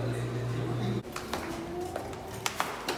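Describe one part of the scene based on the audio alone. Sandals slap on a hard floor.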